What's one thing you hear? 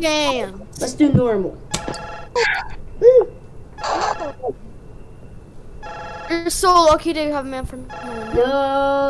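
A young boy talks with animation into a headset microphone.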